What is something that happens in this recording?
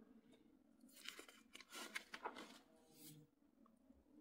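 Paper pages rustle as they are flipped.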